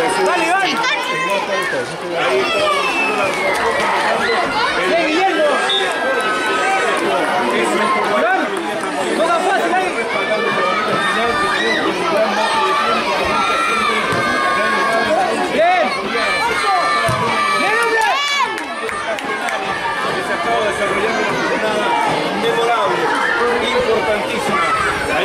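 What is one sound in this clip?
A crowd of children shouts and cheers loudly nearby.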